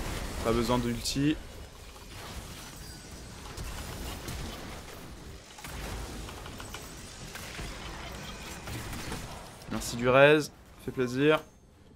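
Video game battle effects clash and zap.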